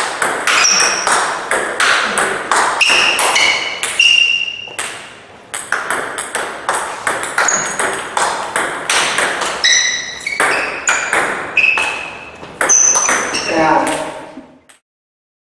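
A table tennis ball clicks back and forth against paddles and the table in a quick rally.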